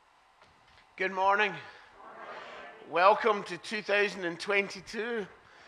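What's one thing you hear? An older man speaks calmly through a microphone in a large echoing hall.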